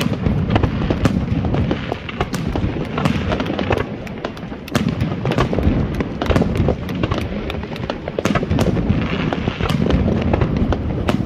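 Fireworks crackle and pop rapidly nearby.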